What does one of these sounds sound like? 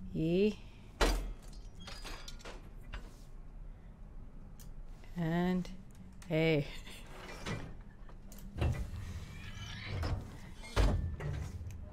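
A metal bar clanks against a lock.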